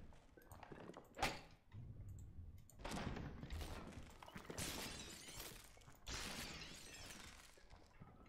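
Brittle figures shatter like breaking glass.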